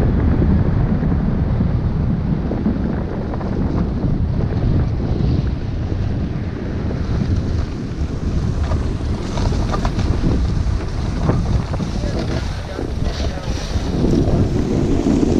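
Wind rushes loudly past the microphone.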